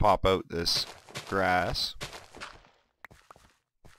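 A shovel digs into dirt with short crunching scrapes.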